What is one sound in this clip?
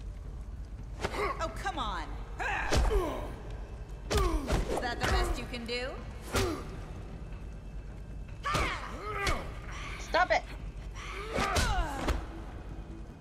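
A man grunts and struggles in a scuffle.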